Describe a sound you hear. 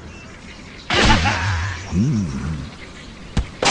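A cartoon bird is flung through the air with a whoosh.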